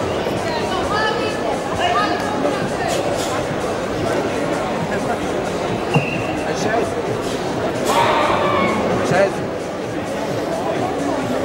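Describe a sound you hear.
A karate competitor shouts sharply while performing a kata.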